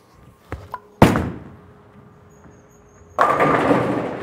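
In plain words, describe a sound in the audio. A bowling ball rolls down the lane with a low rumble.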